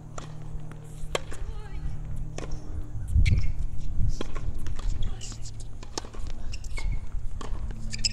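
Tennis shoes squeak and patter on a hard court.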